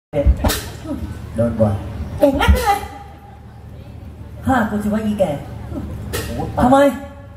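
A young man speaks with animation into a microphone, heard through loudspeakers.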